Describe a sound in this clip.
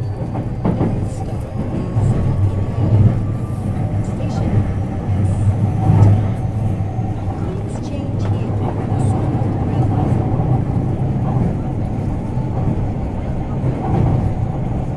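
A stopped train hums steadily while idling.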